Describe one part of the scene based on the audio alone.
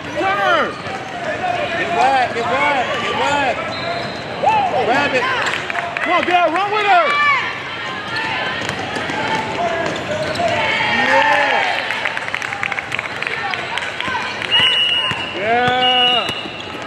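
Sneakers squeak sharply on a hardwood court, over and over.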